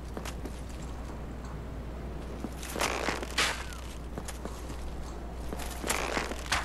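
Arrows whoosh through the air in short bursts.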